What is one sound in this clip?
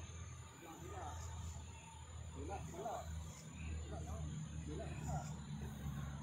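Men talk quietly at a distance.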